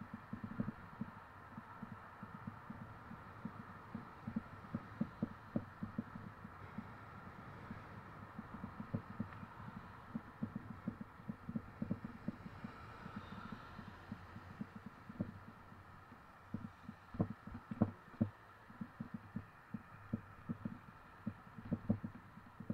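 Traffic rumbles steadily along a nearby road.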